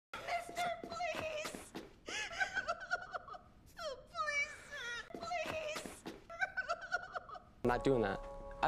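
A young woman sobs and wails in anguish, close by.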